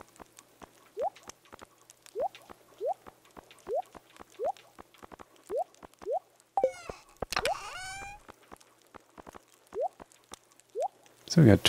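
Short rising electronic blips pop as items are moved in a game menu.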